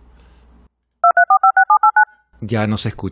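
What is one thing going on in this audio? Short electronic beeps sound in quick succession.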